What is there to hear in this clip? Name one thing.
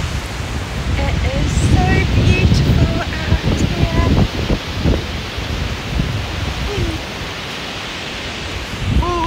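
A young woman talks cheerfully close to a microphone.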